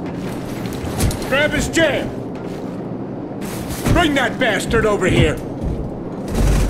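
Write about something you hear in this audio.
A man shouts angrily nearby.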